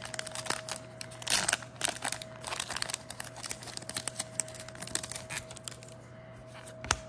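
Cards slide and flick against each other as they are shuffled.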